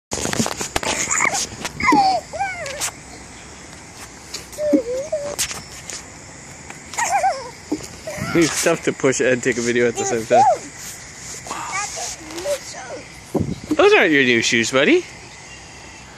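A toddler squeals and babbles happily close by.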